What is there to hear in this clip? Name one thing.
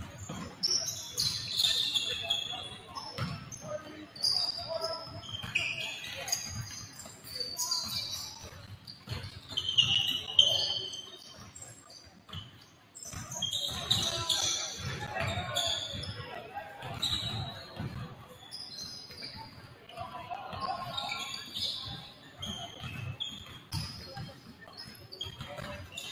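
Basketballs bounce on a hardwood floor in a large echoing gym.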